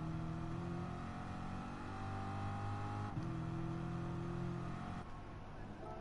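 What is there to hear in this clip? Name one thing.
A race car engine hums steadily and shifts up in pitch.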